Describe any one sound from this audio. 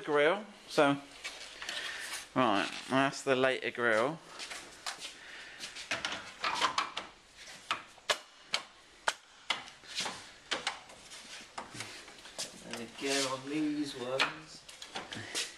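Hands tap and click on a plastic grille.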